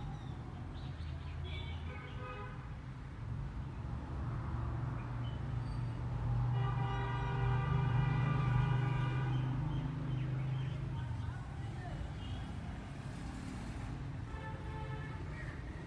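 A hen clucks softly and murmurs close by.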